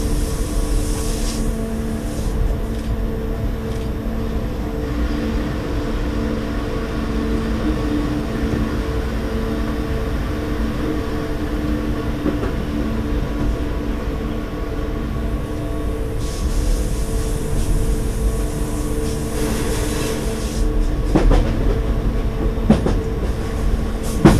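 A train's motor hums steadily.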